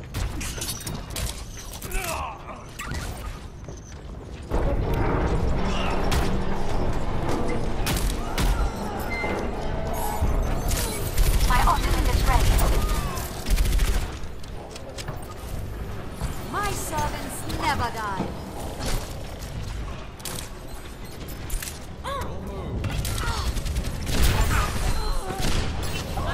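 Gunfire from a game weapon crackles in rapid bursts.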